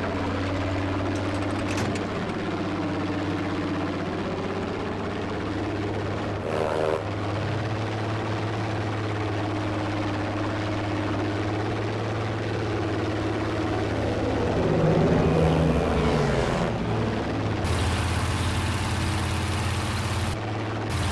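A propeller plane's engine drones steadily throughout.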